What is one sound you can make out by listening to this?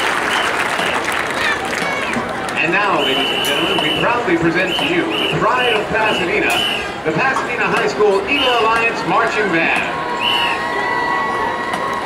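A marching band plays brass instruments in the distance.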